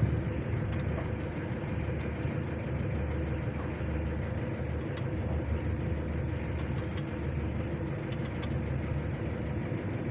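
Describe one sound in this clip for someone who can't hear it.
A hand wrench clicks as it turns a bolt on metal.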